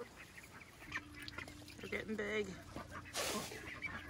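Ducks quack and chatter up close.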